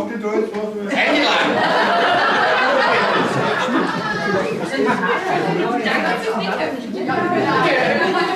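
An elderly man speaks up to the room.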